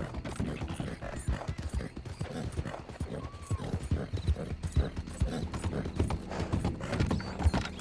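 A horse gallops with heavy, rapid hoofbeats.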